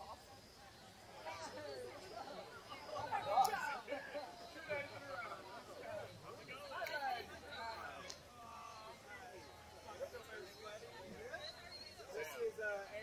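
Several adults chat nearby outdoors.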